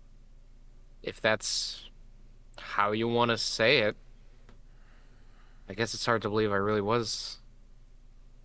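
A young man speaks briefly through a microphone, with pauses.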